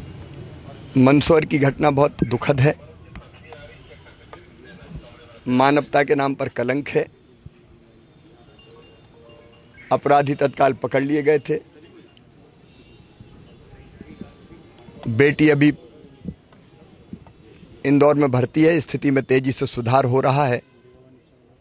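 A middle-aged man speaks calmly and firmly into microphones close by, in short bursts with pauses.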